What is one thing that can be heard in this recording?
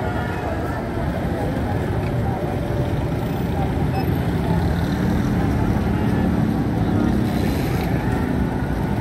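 Busy traffic hums steadily outdoors.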